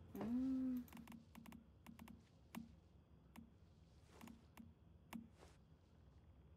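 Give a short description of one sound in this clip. Soft interface clicks sound as menu items are selected.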